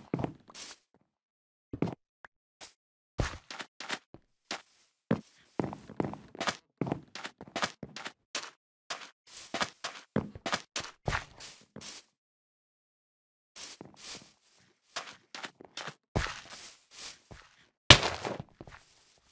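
Footsteps patter quickly over hard ground.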